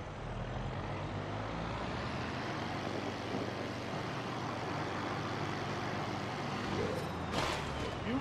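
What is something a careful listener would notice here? A heavy vehicle engine rumbles low and steadily.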